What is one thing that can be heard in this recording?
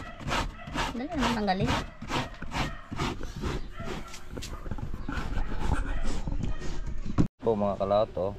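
Coconut scrapes rhythmically against a metal grater.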